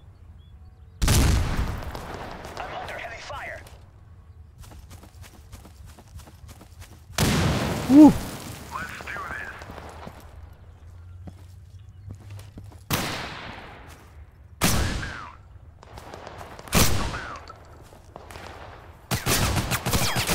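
A shotgun fires loud, echoing blasts every few seconds.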